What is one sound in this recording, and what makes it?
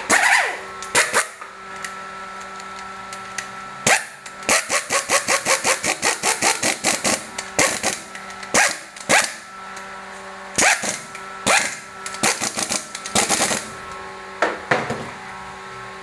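An impact wrench rattles in short bursts.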